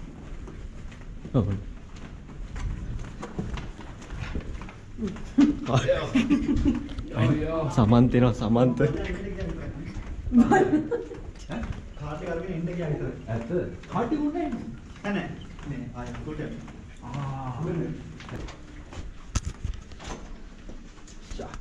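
Footsteps pad softly on carpet.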